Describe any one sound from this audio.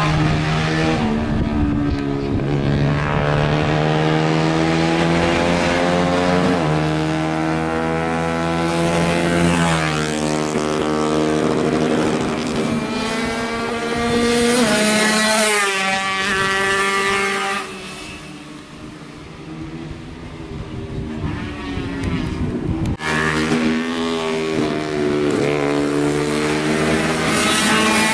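A motorcycle engine revs hard at high pitch, rising and dropping as it shifts gears.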